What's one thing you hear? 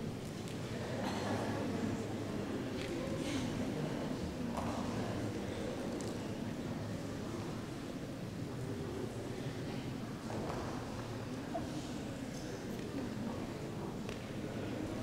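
A seated crowd murmurs and chatters throughout a large echoing hall.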